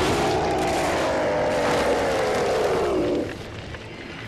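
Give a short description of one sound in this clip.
A monster roars loudly with a long, falling growl.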